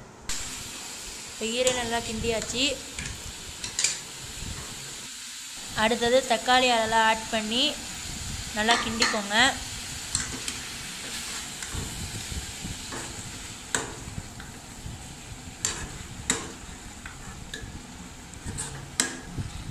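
A metal spatula scrapes and stirs food in a metal pan.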